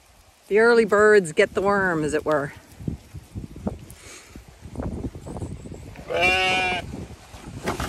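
Sheep bleat loudly close by.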